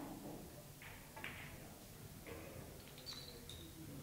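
Billiard balls clack together and knock over small wooden pins.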